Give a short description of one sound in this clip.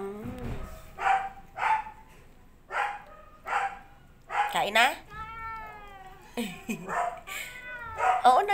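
A cat meows repeatedly close by.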